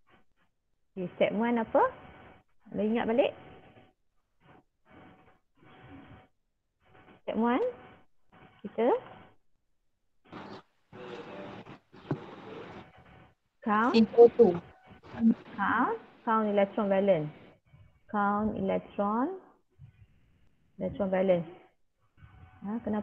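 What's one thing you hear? A woman speaks calmly through an online call, explaining in pauses.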